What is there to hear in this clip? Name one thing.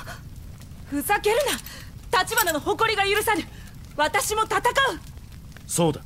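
A young woman shouts angrily.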